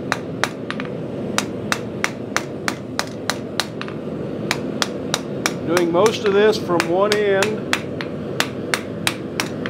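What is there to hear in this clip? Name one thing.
A hammer strikes hot metal on an anvil in a quick, steady rhythm, each blow ringing sharply.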